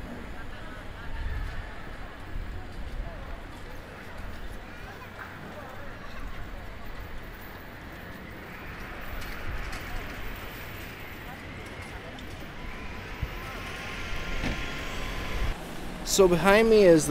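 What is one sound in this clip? Distant voices murmur outdoors.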